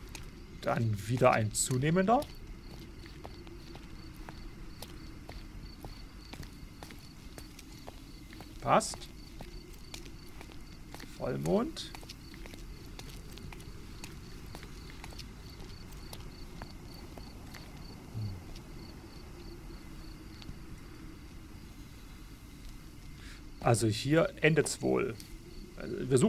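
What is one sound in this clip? Footsteps walk slowly over hard ground and grass.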